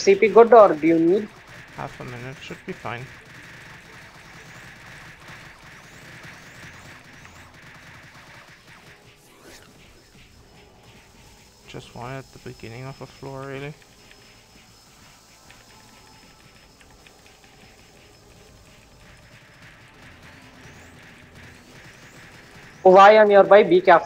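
Magic spells crackle and whoosh in a video game battle.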